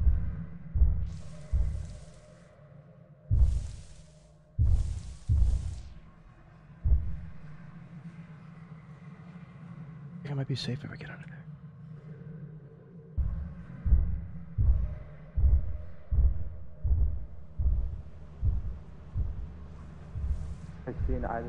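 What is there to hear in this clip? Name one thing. Footsteps thud heavily on soft ground.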